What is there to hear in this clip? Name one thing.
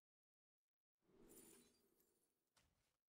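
Coins clink and jingle in a burst.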